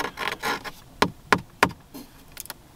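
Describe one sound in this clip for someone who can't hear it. A rotary knob clicks as it is turned.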